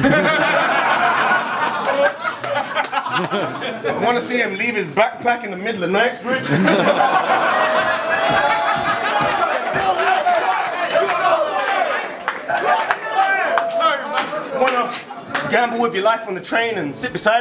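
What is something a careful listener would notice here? A crowd cheers and laughs.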